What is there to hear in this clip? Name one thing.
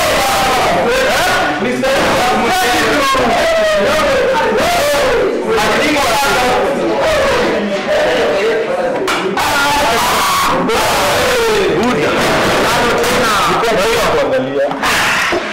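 A crowd of young people sings loudly together in an echoing room.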